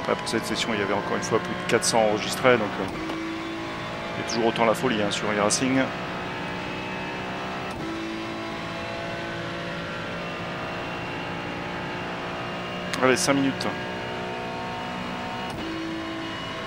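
A racing car engine drones steadily at speed.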